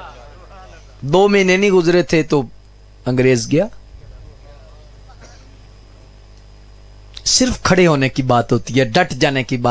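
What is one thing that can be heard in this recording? A man speaks with fervour into a microphone over a loudspeaker.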